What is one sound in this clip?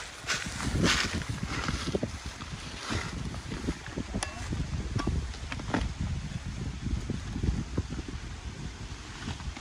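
Leafy plants rustle as a woman handles them.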